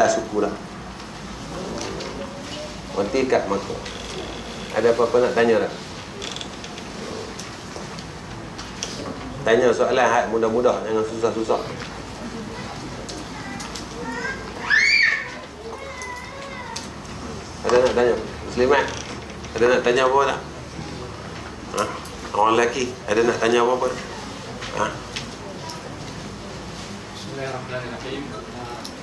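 A middle-aged man speaks calmly into a clip-on microphone, in short bursts with pauses.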